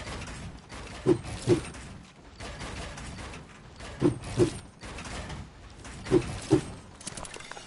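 Game building pieces snap into place with dull thuds in pairs.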